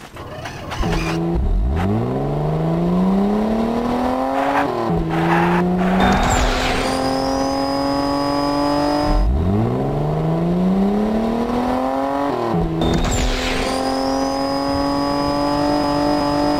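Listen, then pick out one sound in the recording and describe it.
A buggy engine starts and revs up and down as it drives.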